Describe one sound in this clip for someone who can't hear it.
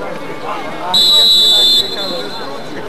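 A referee's whistle blows a sharp blast.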